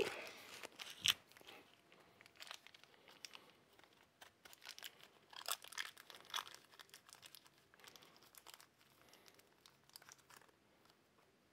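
Small plastic earbuds click and rustle softly in a person's hands.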